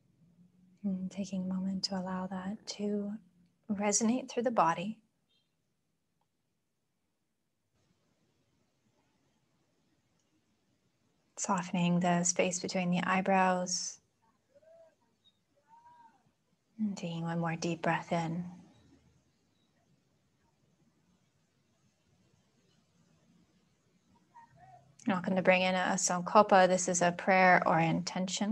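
A young woman speaks calmly and softly into a nearby microphone, pausing between phrases.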